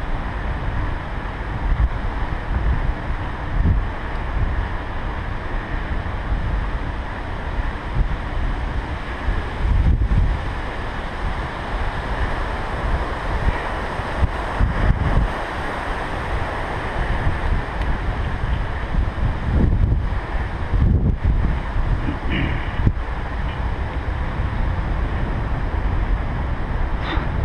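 Bicycle tyres roll and hum on a paved path.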